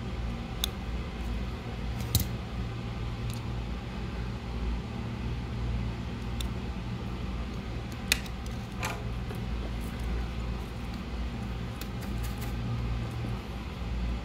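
A small circuit board knocks and clicks lightly as it is handled on a hard surface.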